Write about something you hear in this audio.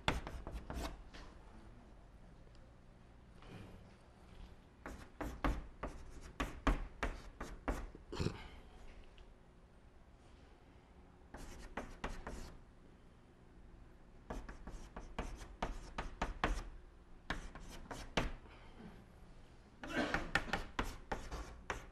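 Chalk taps and scrapes against a blackboard in short bursts.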